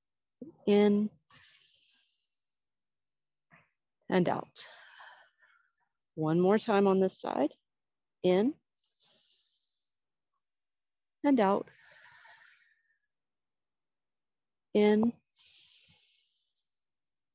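A woman speaks calmly in short phrases, close to a microphone, with pauses between them.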